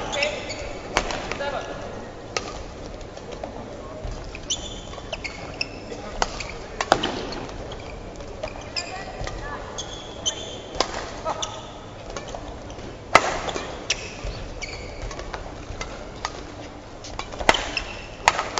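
Badminton rackets strike a shuttlecock.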